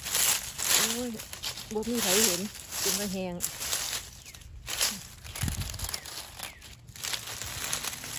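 Dry leaves rustle and crackle as a hand moves through them.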